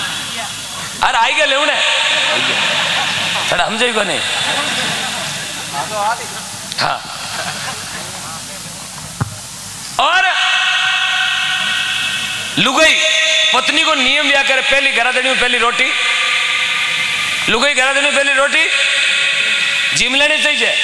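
A young man sings loudly through a microphone, heard over loudspeakers outdoors.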